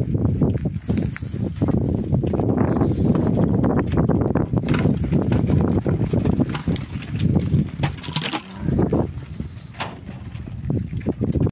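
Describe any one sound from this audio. Hooves of a flock of sheep shuffle and patter on dry ground nearby.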